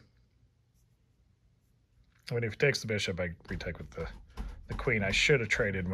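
A chess piece is set down on a board with a light knock.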